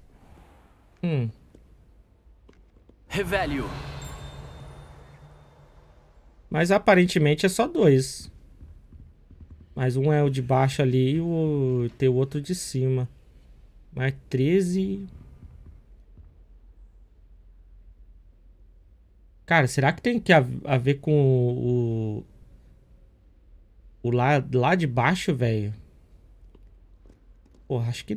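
A man talks with animation into a close microphone, in bursts with pauses.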